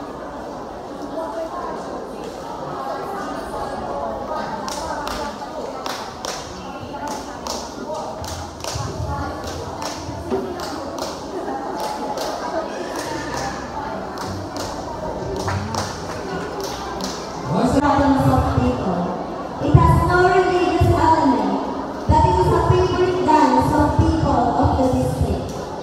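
A crowd of children chatters in the background.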